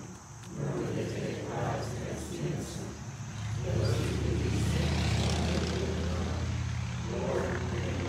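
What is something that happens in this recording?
An elderly woman speaks calmly through a microphone and loudspeaker.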